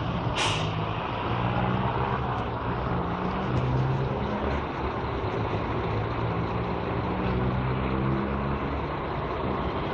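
A bus engine rumbles steadily close by.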